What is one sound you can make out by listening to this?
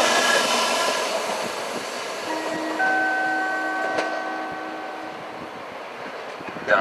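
A train pulls away and fades into the distance.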